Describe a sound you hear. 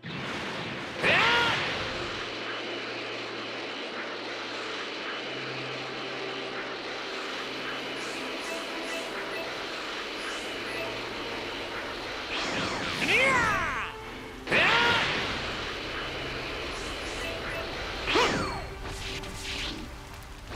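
A loud rushing whoosh of high-speed flight roars steadily.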